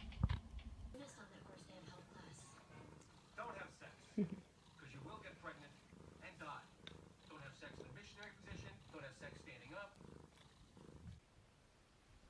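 A cat snores softly.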